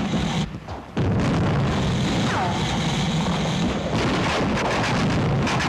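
Flamethrowers roar loudly as they spray fire.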